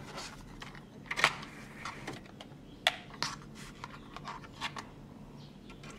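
A plastic disc case clicks open and snaps.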